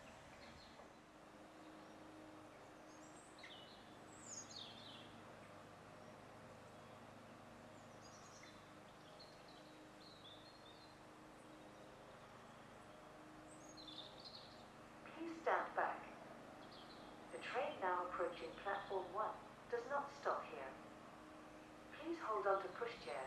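A diesel locomotive rumbles as it approaches slowly.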